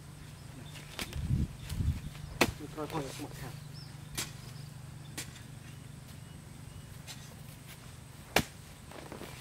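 A hoe chops into soft earth with dull thuds.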